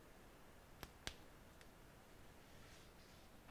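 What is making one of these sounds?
A phone is set down on a soft mat with a light tap.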